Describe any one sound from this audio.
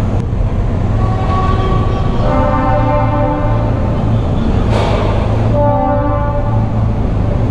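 Other motorcycles rev and ride past nearby.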